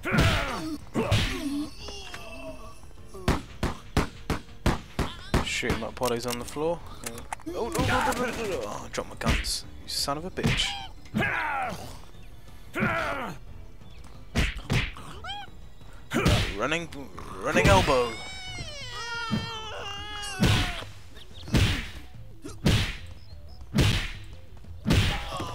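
Heavy punches thud and smack against a creature.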